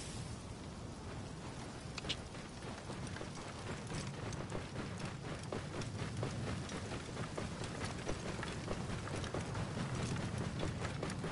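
A camel's hooves thud softly on sand at a steady walk.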